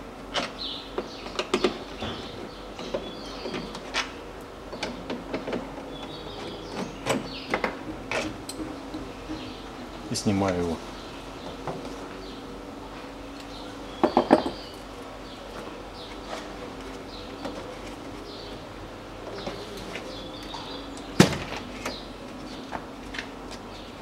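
Plastic parts click and rattle inside a car door.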